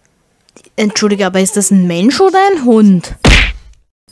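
A young woman speaks in a sly, teasing voice.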